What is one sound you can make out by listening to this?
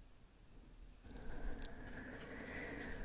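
A young woman speaks softly close to a microphone.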